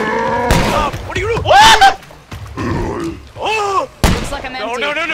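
Pistol shots crack sharply.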